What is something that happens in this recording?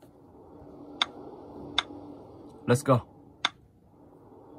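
A tablet game gives sharp clicks as buttons are tapped.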